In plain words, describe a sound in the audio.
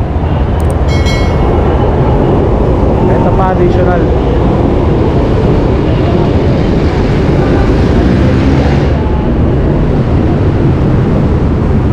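Street traffic rumbles steadily outdoors.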